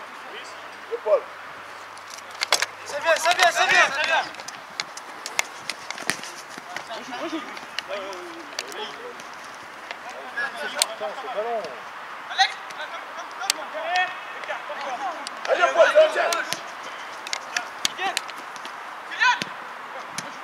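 Young players shout and call out across an open outdoor field.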